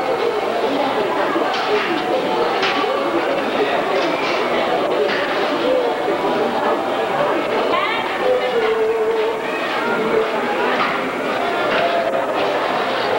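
A busy crowd of men and women chatters all around.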